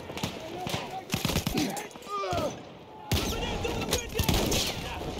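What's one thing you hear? Gunshots crack and boom across a battlefield.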